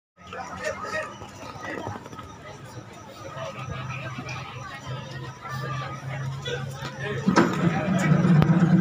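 Musical instruments play along through loudspeakers, growing louder near the end.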